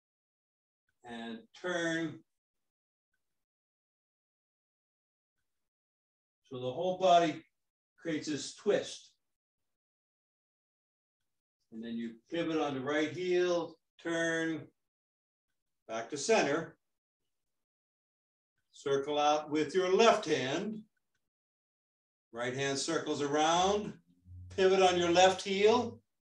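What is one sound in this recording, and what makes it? An older man speaks calmly and slowly, in short phrases with pauses.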